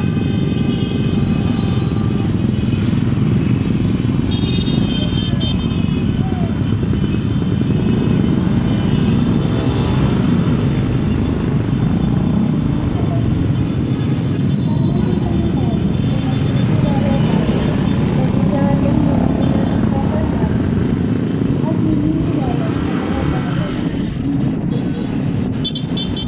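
Many motorcycle engines rumble steadily close by.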